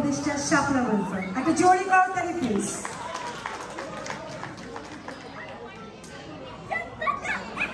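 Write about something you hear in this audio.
A woman speaks into a microphone through loudspeakers in a large echoing hall.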